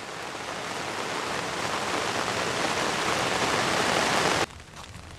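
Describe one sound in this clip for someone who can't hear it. A waterfall roars steadily in the distance.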